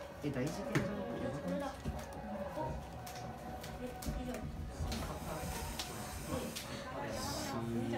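Playing cards are shuffled and flicked with soft clicks.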